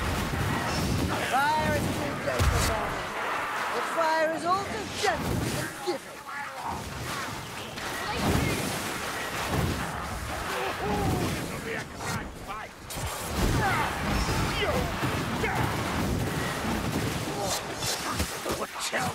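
Creatures snarl and shriek in a crowd.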